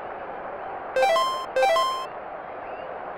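Two bright electronic chimes sound in quick succession.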